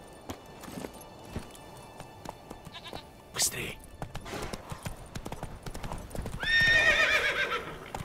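Horse hooves clop quickly on a path.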